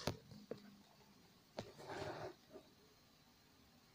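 Fabric rustles close by.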